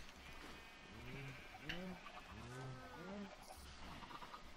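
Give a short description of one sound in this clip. Pigs grunt and cows moo nearby.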